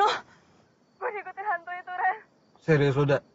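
A young man speaks into a phone.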